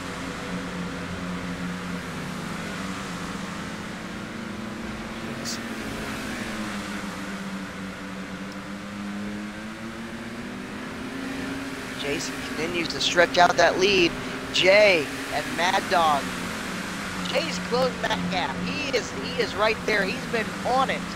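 Racing car engines drone steadily, rising and falling in pitch.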